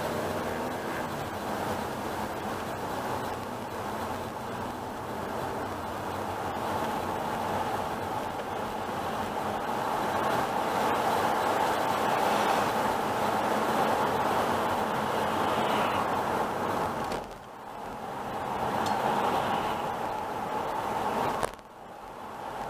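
Tyres hiss steadily on a wet road as a car drives along.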